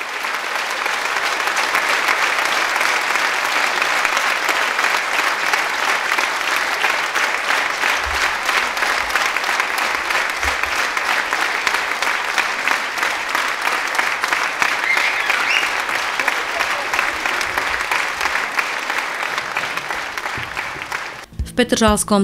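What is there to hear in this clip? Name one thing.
A large audience applauds loudly in an echoing hall.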